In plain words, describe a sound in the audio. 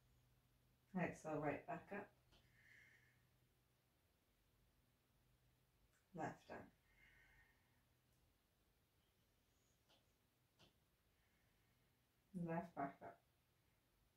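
A woman speaks calmly and softly close by, with long pauses.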